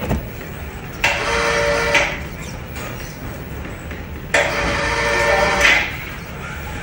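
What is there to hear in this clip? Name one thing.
A small electric motor whines in short bursts.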